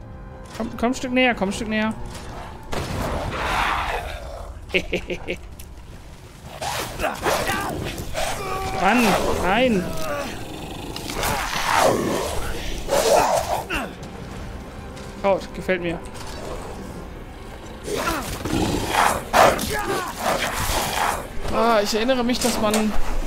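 A creature snarls and growls.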